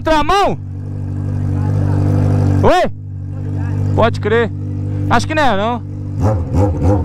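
An inline-four Honda Hornet with a straight-pipe exhaust revs in sharp bursts.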